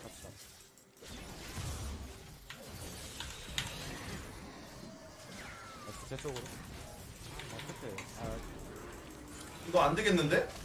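Video game combat sound effects whoosh and clash.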